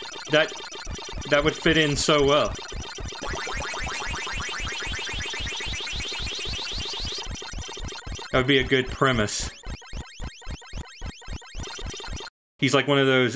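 An arcade maze game chomps with quick, rhythmic bleeps.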